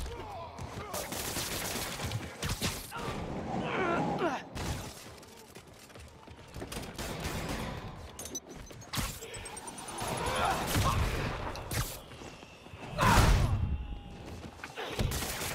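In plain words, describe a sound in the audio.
Punches and kicks thud against bodies in a fast brawl.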